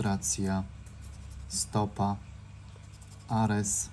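An object rubs and scratches against a scratch card.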